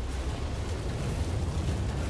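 Fire bursts and crackles.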